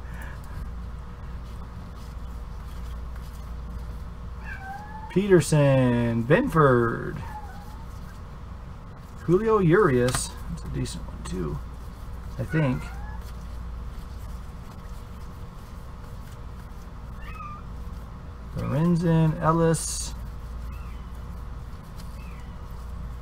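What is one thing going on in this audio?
Stiff trading cards rustle and click softly as they are flipped through by hand.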